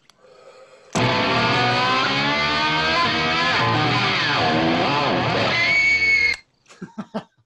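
A woman screams loudly in a film playing through speakers.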